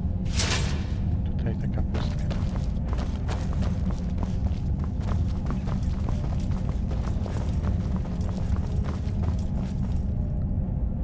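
Footsteps thud on a stone floor in a large echoing hall.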